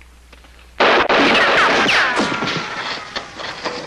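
Rocks and debris clatter down after a blast.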